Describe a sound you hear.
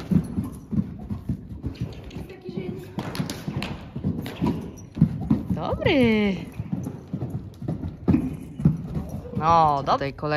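Hooves thud on soft sand as a horse canters.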